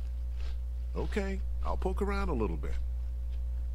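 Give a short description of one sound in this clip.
A man answers calmly, close by.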